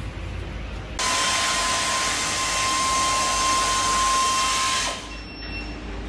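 Compressed air hisses loudly from a machine, then stops.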